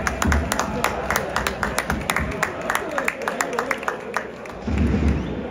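A large crowd claps rapidly in an open stadium.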